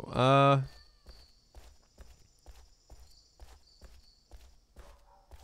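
Footsteps tread steadily on a hard pavement.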